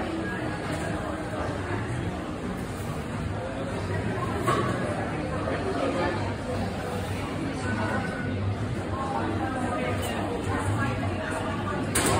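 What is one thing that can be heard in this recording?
Men and women chatter indistinctly nearby in a large, echoing indoor hall.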